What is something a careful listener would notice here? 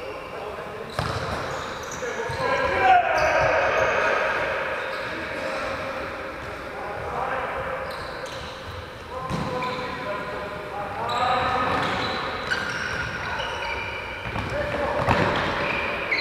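A ball thuds when kicked.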